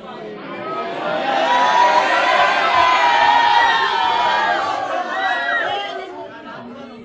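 Teenagers talk and call out loudly.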